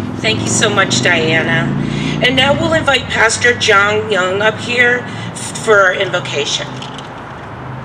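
A woman speaks calmly through a microphone and loudspeaker outdoors.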